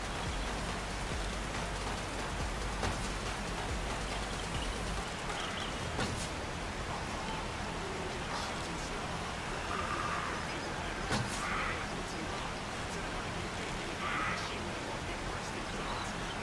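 A bow creaks as its string is drawn back.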